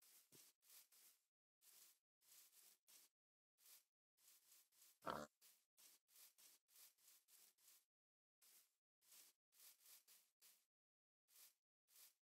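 Footsteps rustle steadily through tall grass.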